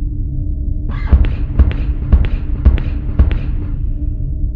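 Footsteps tap across a hard floor in a quick, even run.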